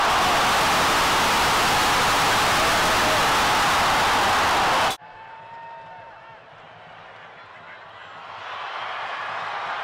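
A large stadium crowd cheers and roars outdoors.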